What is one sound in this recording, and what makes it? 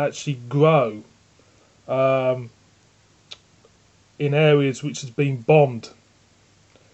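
A man speaks close up, slowly and expressively, in short bursts.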